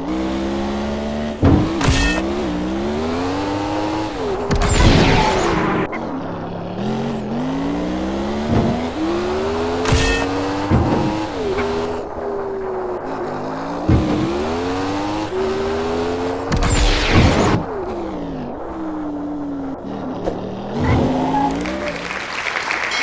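A game car engine revs up and down repeatedly.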